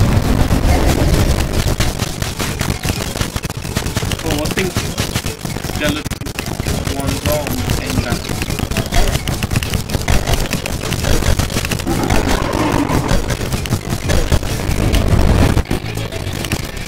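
Rapid game weapon shots and hit sounds crackle without pause.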